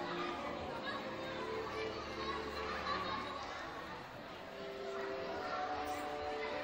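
A crowd of children and adults chatters in a large echoing gym.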